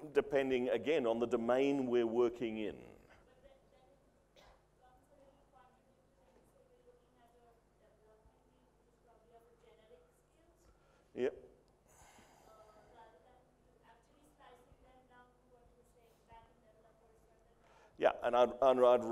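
A middle-aged man speaks with animation through a microphone.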